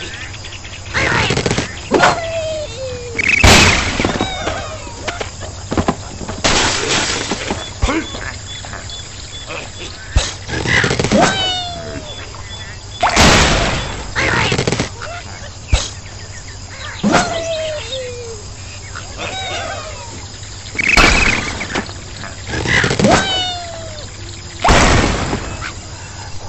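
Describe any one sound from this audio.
A slingshot stretches and snaps as it launches.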